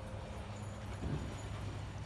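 A small dog pants close by.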